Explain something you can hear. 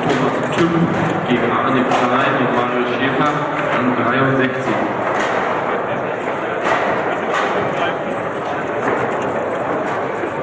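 A foosball ball clacks against plastic players and the table walls.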